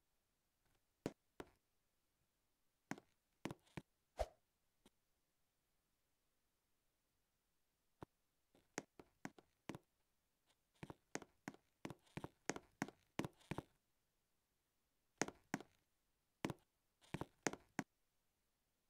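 Quick footsteps tap on the ground in short bursts.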